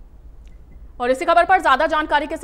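A woman reads out the news calmly into a microphone.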